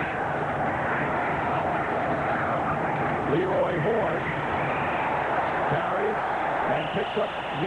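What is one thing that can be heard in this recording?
A stadium crowd roars steadily outdoors.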